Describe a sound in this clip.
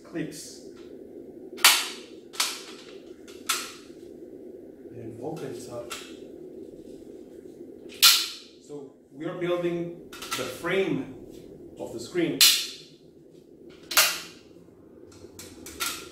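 Aluminium poles clank and click as they are folded and unfolded.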